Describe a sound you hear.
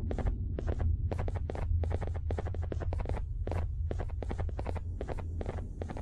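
Heavy footsteps thud quickly and steadily on a hard floor.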